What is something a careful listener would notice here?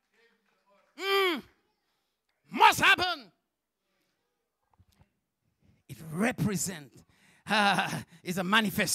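A man preaches with animation through a microphone and loudspeakers, in bursts with pauses.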